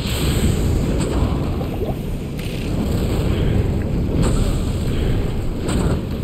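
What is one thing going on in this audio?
Electric bolts crackle and zap in sharp bursts.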